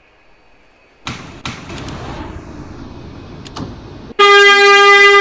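A subway train rumbles into a station.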